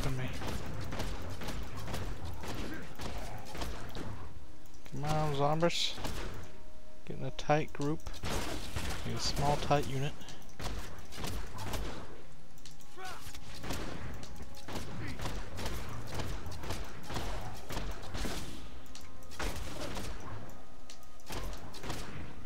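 Blows and magic blasts crash repeatedly in a fast game battle.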